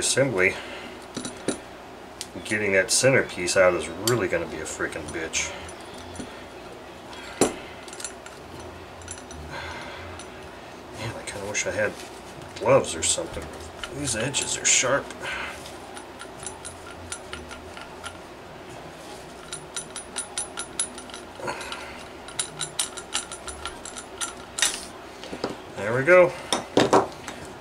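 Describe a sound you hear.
Metal parts clink and knock together as they are handled.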